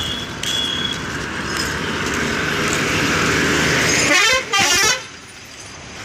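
A bus roars past close by.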